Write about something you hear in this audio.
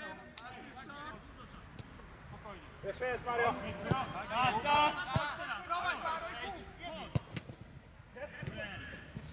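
Men shout and call to each other across an outdoor pitch.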